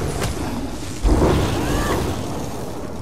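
A magical blast bursts with a deep whoosh.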